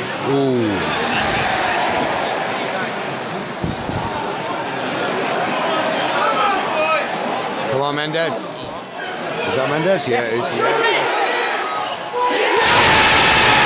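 A large stadium crowd sings and chants, echoing under a roof.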